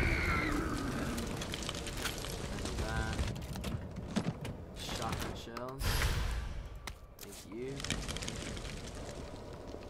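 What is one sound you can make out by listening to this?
Small flames crackle as they burn.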